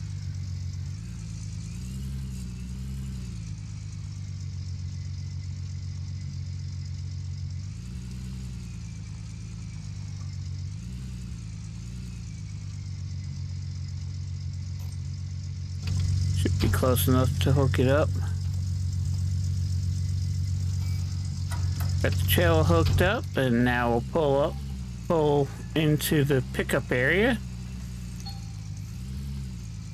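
A pickup truck engine idles and revs with a low hum.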